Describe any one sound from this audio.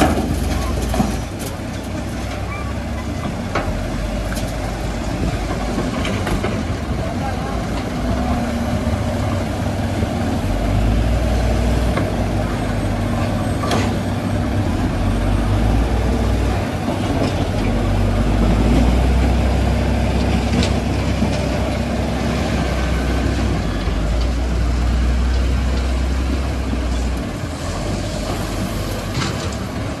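A diesel excavator engine rumbles steadily and revs.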